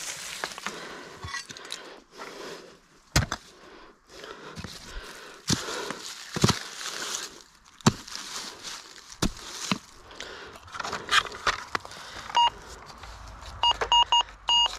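Metal tools scrape and clink against rocks and loose stones.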